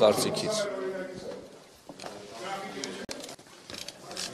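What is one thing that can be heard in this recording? A crowd murmurs in a room.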